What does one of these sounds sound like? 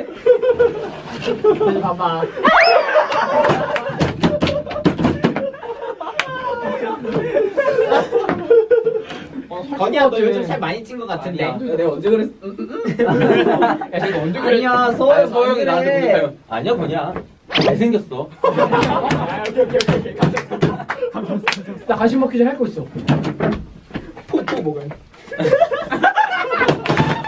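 Young men talk and joke with animation close by.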